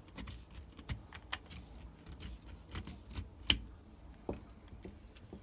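A probe tip clicks and taps against plastic.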